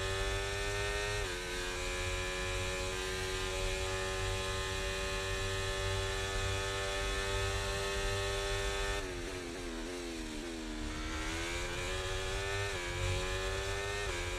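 A racing car engine screams at high revs, dropping in pitch as it shifts down for a corner and rising again as it speeds up.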